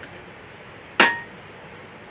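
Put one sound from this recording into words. Metal clanks once sharply.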